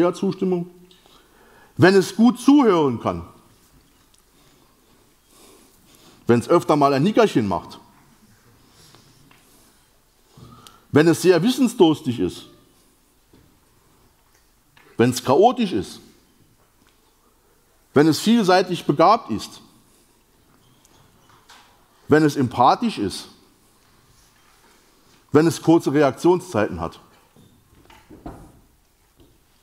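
A man speaks into a microphone in bursts, with pauses between phrases, in a large echoing hall.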